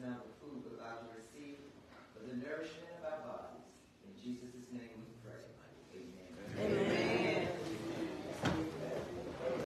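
A woman speaks with animation into a microphone in an echoing hall.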